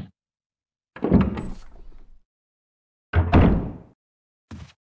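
A wooden door creaks open slowly.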